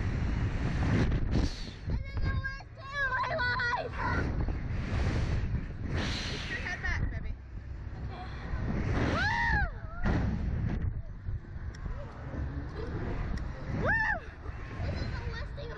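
A woman laughs and shrieks close by.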